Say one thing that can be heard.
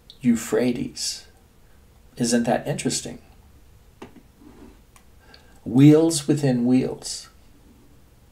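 An elderly man speaks calmly and close up, in short phrases.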